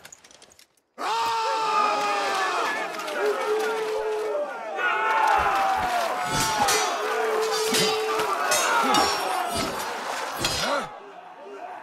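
A crowd of men shouts and yells in battle.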